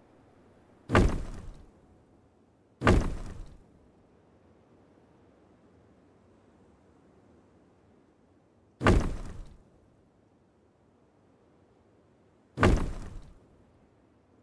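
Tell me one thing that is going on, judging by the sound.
A hammer strikes with loud, ringing knocks, a few seconds apart.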